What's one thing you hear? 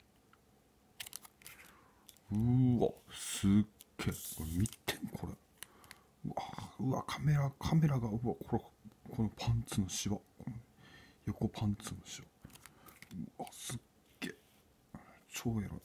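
A plastic card sleeve crinkles and rustles between fingers.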